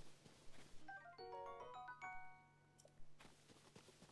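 A short bright chime melody plays.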